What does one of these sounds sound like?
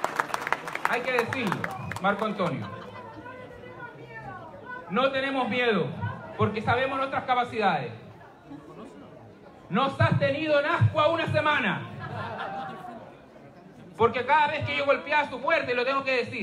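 A man speaks with animation into a microphone, heard through loudspeakers in a large echoing hall.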